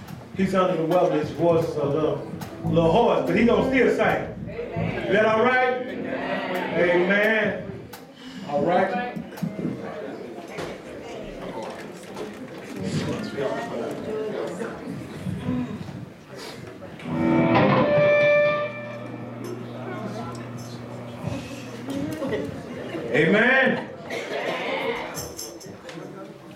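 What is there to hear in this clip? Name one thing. A man sings loudly into a microphone, heard through loudspeakers in an echoing hall.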